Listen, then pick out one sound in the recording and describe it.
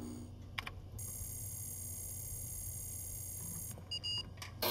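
A computer beeps with a high electronic tone.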